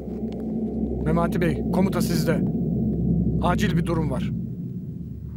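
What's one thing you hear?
A middle-aged man speaks firmly and urgently nearby.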